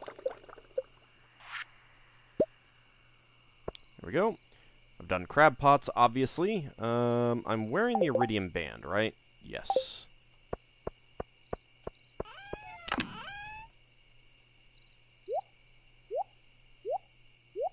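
Short game menu clicks and blips sound now and then.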